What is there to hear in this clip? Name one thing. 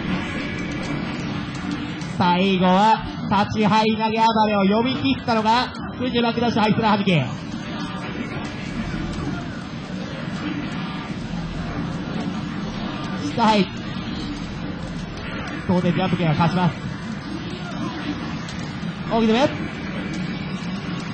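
Arcade fighting game music plays.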